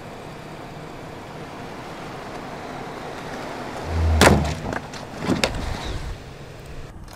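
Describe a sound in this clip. A car drives along smooth pavement with a steady road rumble.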